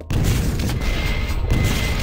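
A rocket blast booms nearby.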